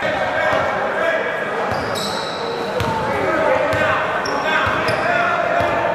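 A basketball bounces on a hard floor, echoing.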